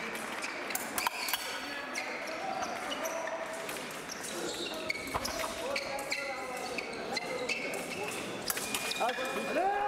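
Metal blades clink against each other.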